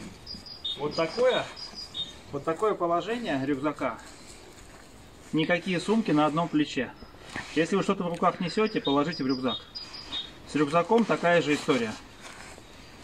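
A man talks calmly and clearly, close by.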